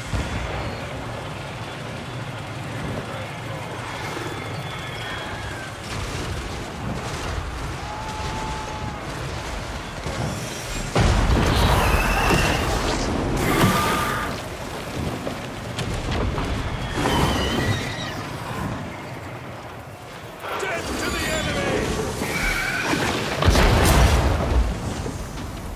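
Battle noise rumbles steadily.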